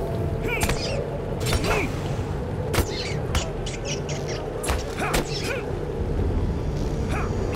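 Sword blows strike sharply again and again.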